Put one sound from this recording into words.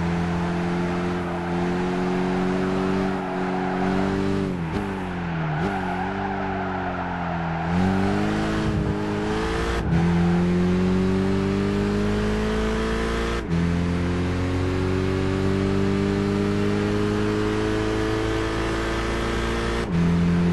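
A race car engine roars, dropping in pitch when braking and rising steadily through the gears.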